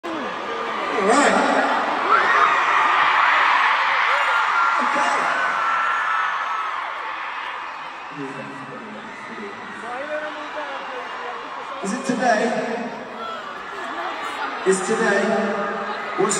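A large crowd screams and cheers in a big echoing arena.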